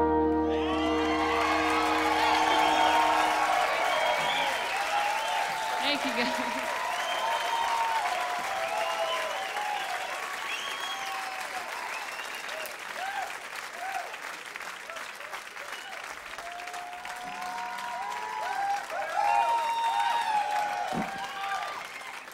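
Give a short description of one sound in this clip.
A large crowd applauds.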